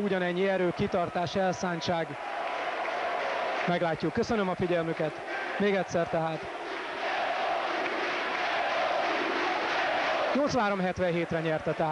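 A large crowd cheers and claps in a big echoing hall.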